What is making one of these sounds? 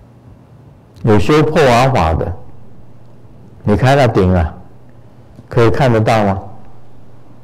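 An elderly man speaks calmly in short phrases into a microphone.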